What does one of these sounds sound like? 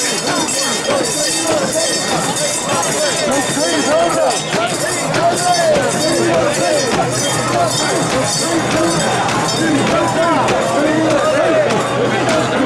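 A large crowd of men chants loudly in rhythm, close by.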